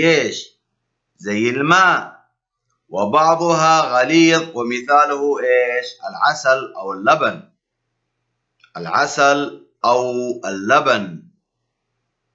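A man talks calmly into a microphone, explaining.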